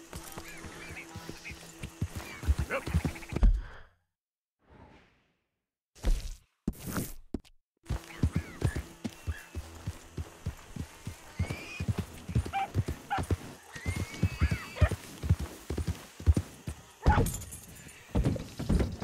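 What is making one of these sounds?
A horse's hooves thud on soft ground at a trot.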